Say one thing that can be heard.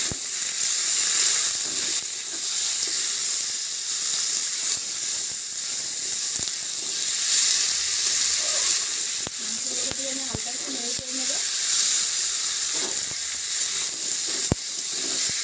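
Chicken pieces sizzle and hiss in a hot pan.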